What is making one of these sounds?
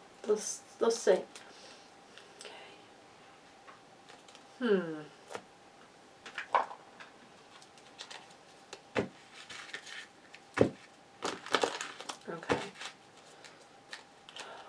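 A deck of cards is shuffled with quick soft flicks and taps.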